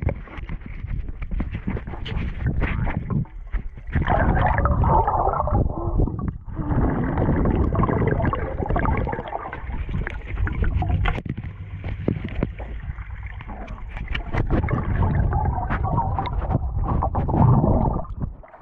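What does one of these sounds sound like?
Water splashes and bubbles, heard muffled from underwater.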